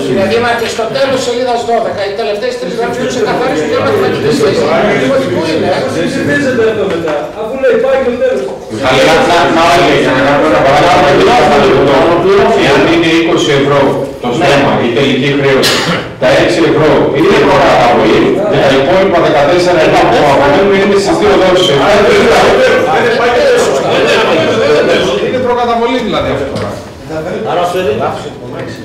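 A man speaks with animation into a microphone.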